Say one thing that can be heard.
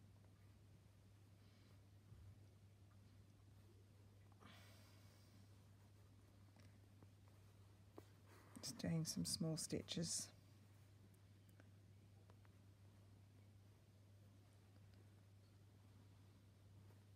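Thread rustles softly as it is pulled through fabric.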